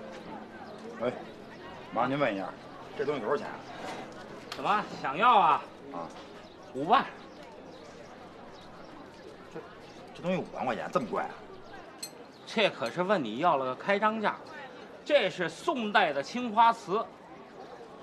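Two men talk calmly, close by.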